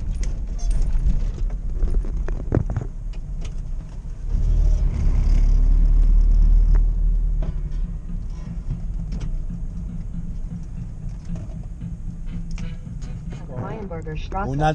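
The four-cylinder petrol engine of a UAZ van drones, heard from inside the cab.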